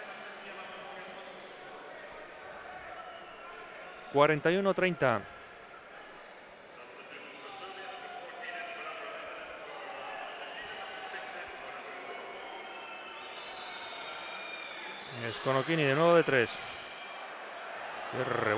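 Basketball shoes squeak on a wooden court.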